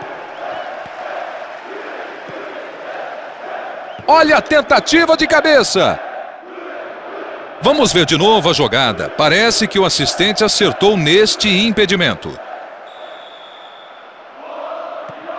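A large stadium crowd roars steadily in the distance.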